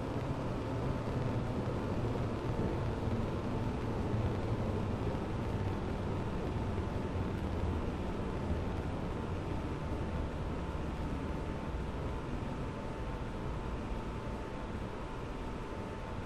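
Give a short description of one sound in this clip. An electric commuter train pulls away on a neighbouring track and fades.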